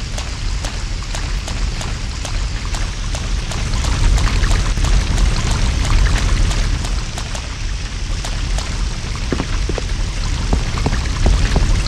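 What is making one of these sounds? Footsteps tap on wet ground.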